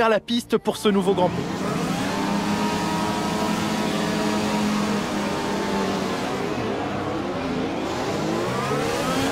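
Racing car engines roar and whine at high speed close by.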